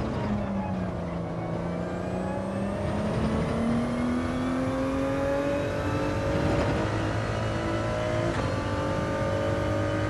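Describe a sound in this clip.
A racing car engine roars steadily, its pitch climbing as the car speeds up.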